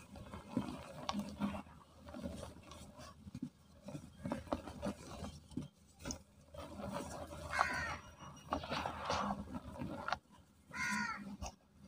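Fine dust pours and trickles through fingers with a soft hiss.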